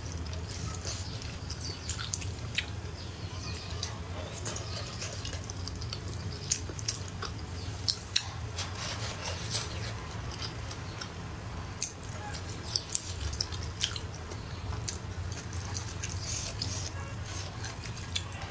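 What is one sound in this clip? Chopsticks click against a ceramic plate.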